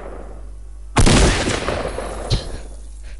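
A treasure chest bursts open with a loud rushing whoosh.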